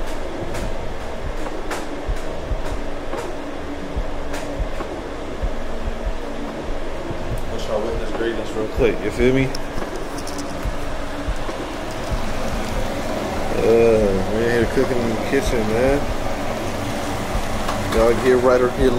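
Ground meat sizzles in a hot pan.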